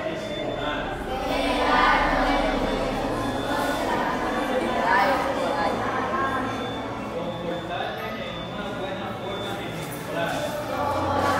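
A group of children recite together in unison, close by, in a room that echoes.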